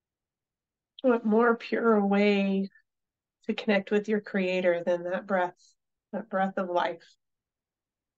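A woman speaks calmly and softly into a microphone, as if on an online call.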